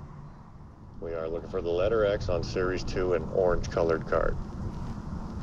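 A small radio plays a talking voice through its tinny speaker.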